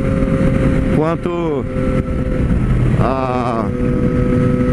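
A motorcycle engine dips and climbs in pitch as gears change.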